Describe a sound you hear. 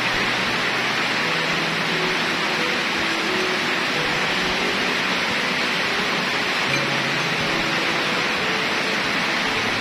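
Heavy rain pours down steadily outdoors.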